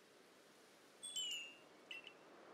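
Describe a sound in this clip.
A small creature gives a short, high chirping cry.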